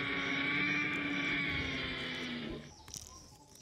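A toy dinosaur gives a loud electronic roar.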